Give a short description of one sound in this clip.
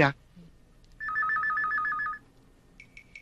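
A telephone rings.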